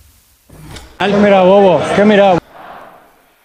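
A man speaks loudly into a microphone with animation.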